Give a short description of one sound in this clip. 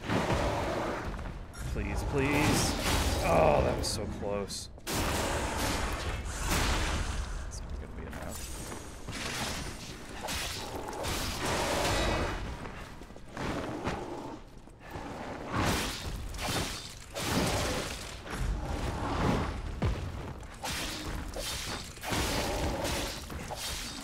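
Blades slash and clang against a monster.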